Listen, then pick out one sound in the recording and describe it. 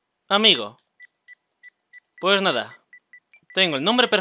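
Short electronic ticks sound in quick succession.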